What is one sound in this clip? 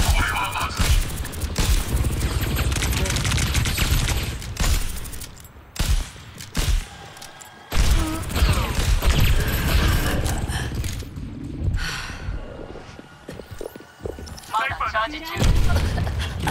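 Sniper rifle shots crack with sharp bangs.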